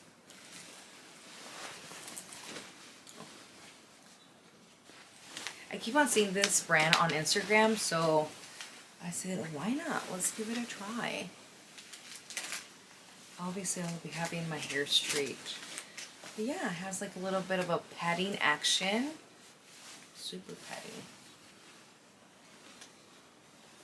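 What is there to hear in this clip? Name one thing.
Fabric rustles as a jacket is handled.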